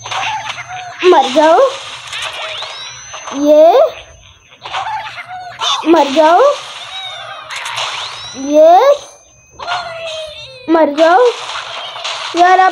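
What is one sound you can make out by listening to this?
Cartoon birds squawk loudly as they are flung through the air.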